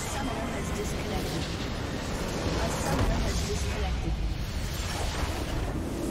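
A video game structure explodes with a deep boom.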